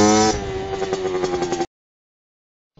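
A dirt bike engine revs loudly close by.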